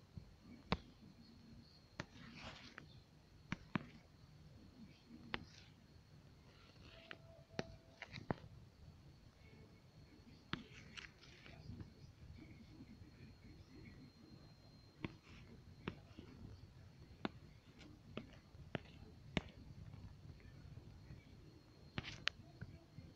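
A pen taps and scratches on a tablet's glass surface.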